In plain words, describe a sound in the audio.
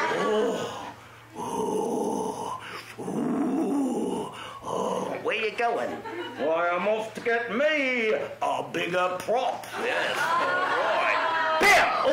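A man voices puppets in shrill, squawking tones, with animation.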